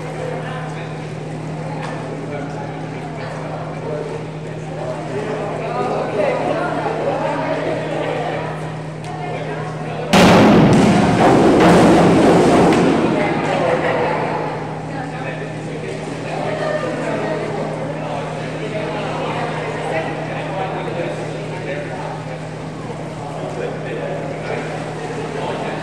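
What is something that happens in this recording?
A crowd murmurs and chatters in an echoing indoor pool hall.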